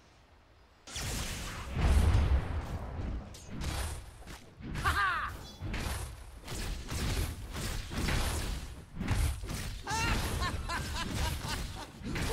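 Game weapons clash and strike loudly in a fight.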